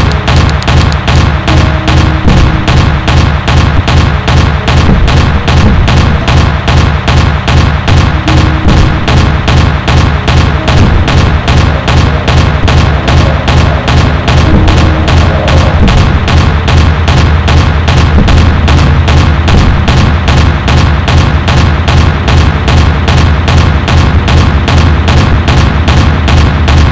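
A twin anti-aircraft gun fires in rapid, steady bursts.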